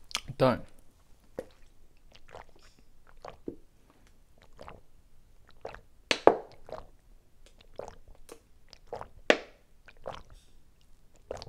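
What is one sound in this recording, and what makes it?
A young man gulps water in loud, regular swallows.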